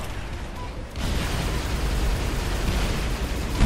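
An energy rifle fires in rapid bursts.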